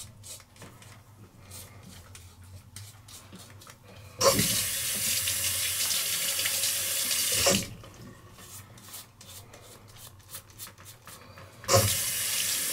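A razor scrapes across stubble in short strokes.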